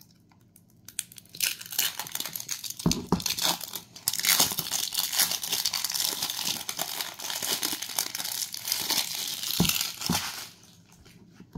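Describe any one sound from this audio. Fingernails scratch and tap rapidly on a plastic jar.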